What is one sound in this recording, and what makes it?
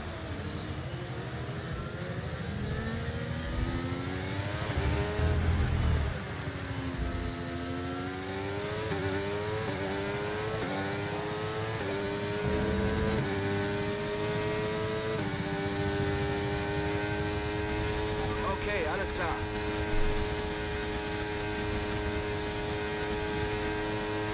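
A racing car engine revs up and climbs through the gears.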